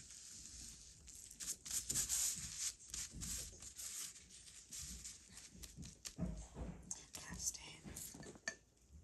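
Gloved hands rub and smooth tissue paper, rustling and crinkling.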